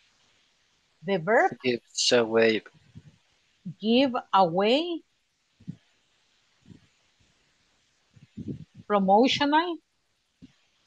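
A woman speaks calmly and slowly, heard through an online call.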